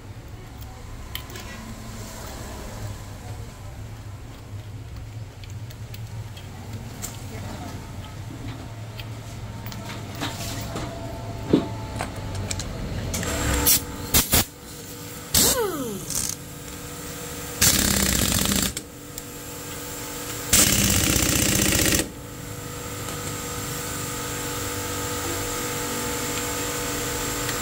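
Metal parts clink softly as they are handled.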